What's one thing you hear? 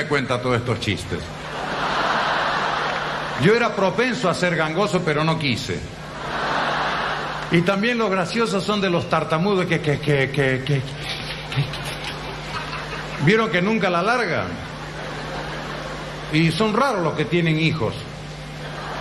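A man speaks with animation into a microphone on a stage.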